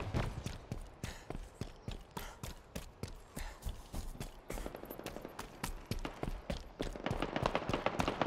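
Quick footsteps thud steadily on hard ground.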